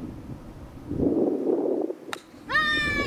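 A golf club strikes sand with a soft thud.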